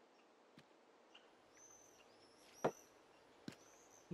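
A glass bottle clinks down onto a wooden ledge.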